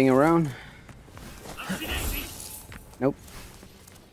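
A sword swishes through the air in quick slashes.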